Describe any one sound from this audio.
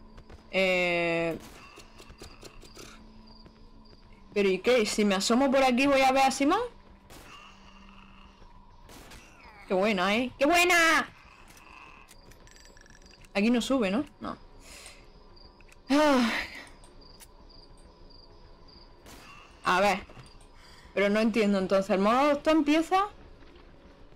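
A young woman talks with animation close to a microphone.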